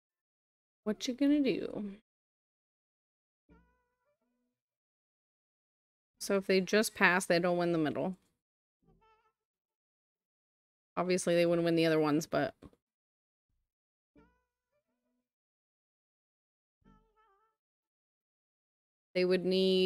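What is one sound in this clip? A woman speaks casually into a close microphone, in short bursts with pauses.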